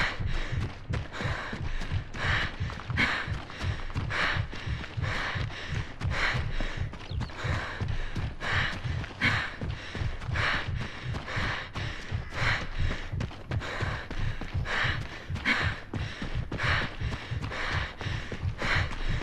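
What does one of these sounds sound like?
Quick footsteps thud steadily as a soldier runs over ground.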